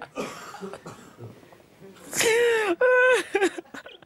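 A man laughs, close to a microphone.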